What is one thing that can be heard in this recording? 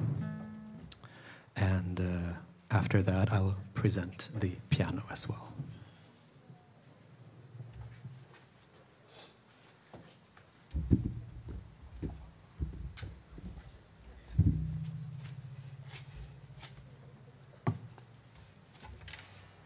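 A man plucks the strings of a large stringed instrument, with deep notes ringing out.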